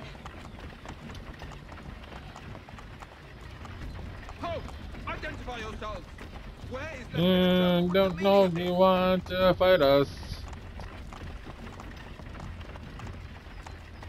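A wooden wagon rolls and rumbles along a dirt road.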